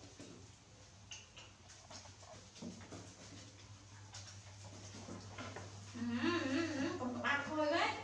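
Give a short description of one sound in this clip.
Water splashes softly in a tub.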